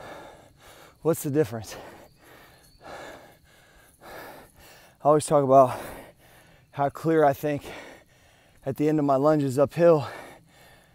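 A middle-aged man talks close to the microphone in short, animated bursts.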